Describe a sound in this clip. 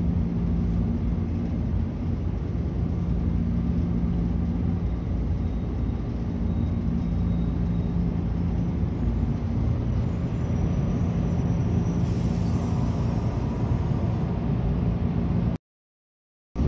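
A train rumbles steadily along the tracks with a low, droning hum.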